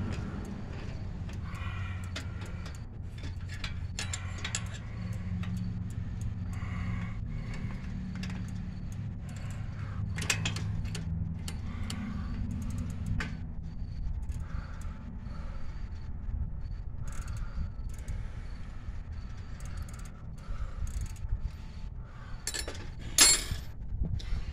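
Metal clicks and rattles as a wire basket is handled.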